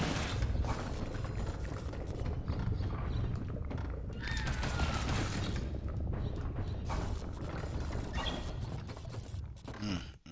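Water rumbles and swirls as a diver swims underwater.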